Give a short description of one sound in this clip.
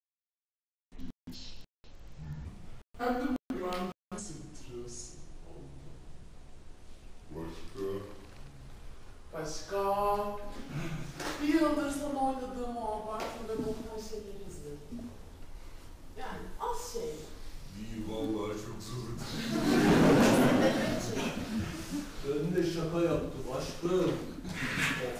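A young woman speaks with feeling.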